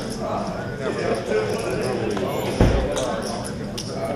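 Poker chips clink on a table.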